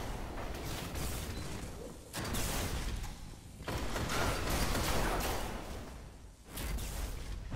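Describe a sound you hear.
A gun fires in bursts.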